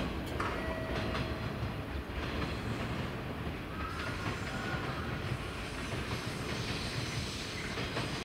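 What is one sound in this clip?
A train rumbles along the rails in the distance.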